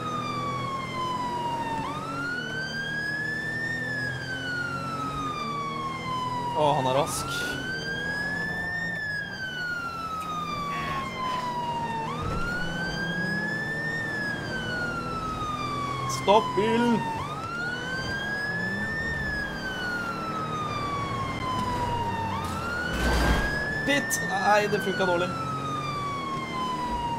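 A police siren wails steadily, rising and falling in a slow cycle.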